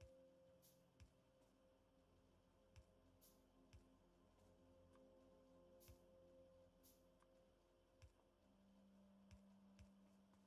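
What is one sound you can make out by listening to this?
Machines hum steadily.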